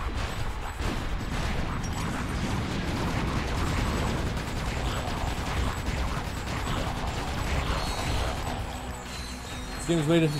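Gunfire and explosions from a video game rattle and boom.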